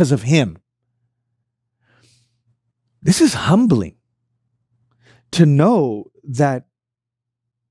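A man speaks calmly and clearly into a close microphone, in short phrases.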